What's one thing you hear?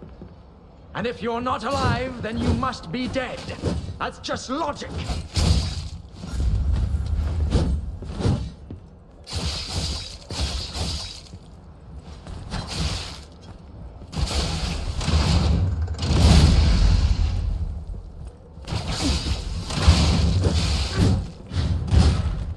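Heavy footsteps thump on wooden boards.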